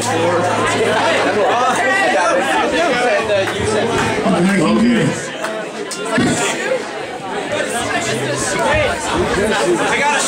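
A bass guitar plays a low line.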